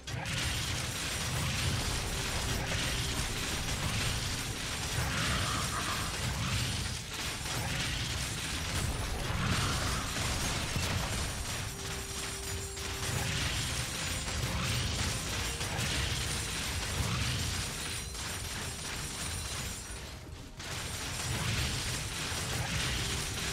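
Game combat sounds of spells and attacks crackle and burst throughout.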